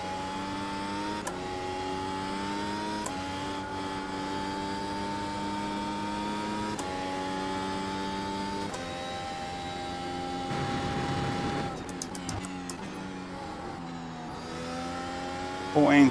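A racing car engine roars at high revs, its pitch climbing and dropping sharply with each gear change.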